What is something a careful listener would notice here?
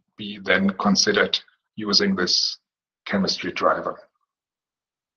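A middle-aged man speaks calmly through a microphone in an online call.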